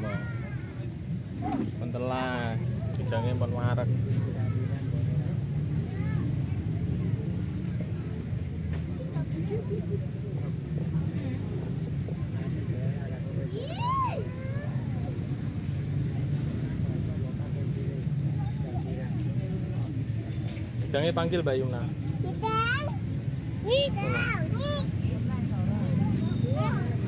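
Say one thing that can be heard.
Young children talk and squeal excitedly close by.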